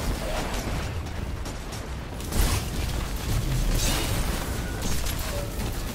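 Electric energy blasts crackle and boom from a game.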